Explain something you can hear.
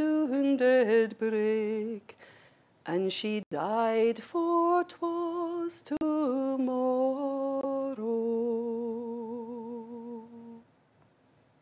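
A middle-aged woman sings slowly and unaccompanied, holding long notes.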